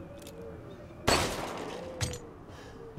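A handgun fires a single shot.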